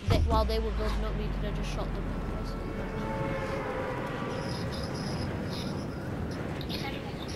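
Wind rushes steadily past a falling game character.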